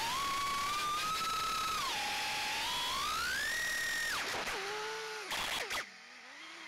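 Electric motors whine loudly, rising and falling in pitch.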